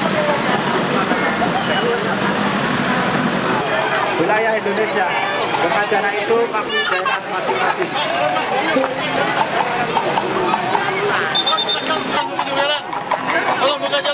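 A large outdoor crowd chatters and calls out loudly all around.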